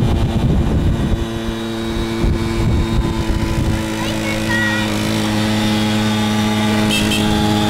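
A small moped engine hums steadily as it rides past.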